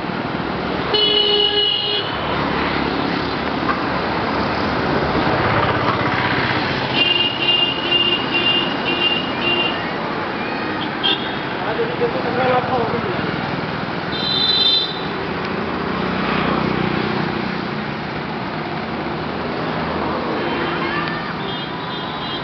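Car horns honk in the traffic.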